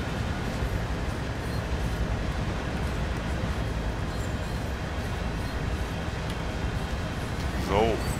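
A freight train rumbles steadily as it rolls past.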